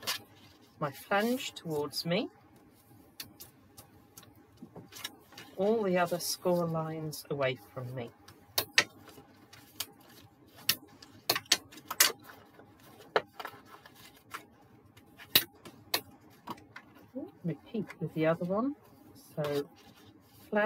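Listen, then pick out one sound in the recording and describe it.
Paper rustles and crinkles as it is folded and handled.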